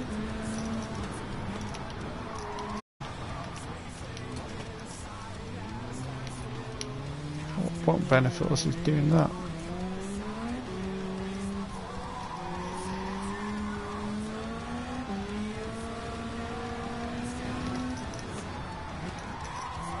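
A racing car engine drones and revs up and down through gear changes.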